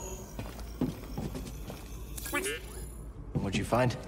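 A small robot beeps and chirps.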